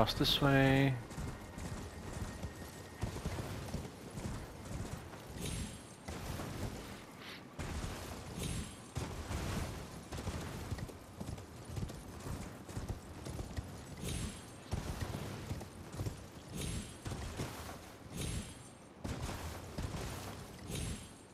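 Hooves gallop steadily over grass and rock.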